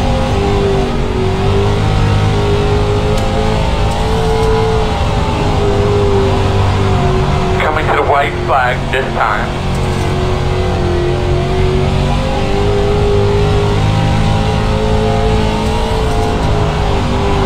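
A race car engine roars steadily, rising and falling in pitch.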